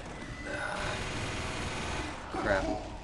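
A heavy machine gun fires in a rapid rattling burst.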